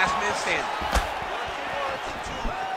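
A kick lands on a body with a dull thud.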